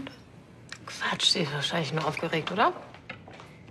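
A young woman answers calmly nearby.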